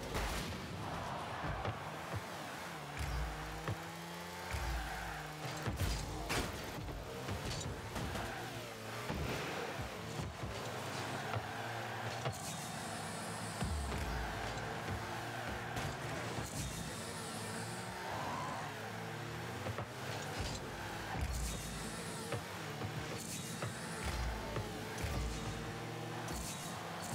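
A ball is struck with thuds.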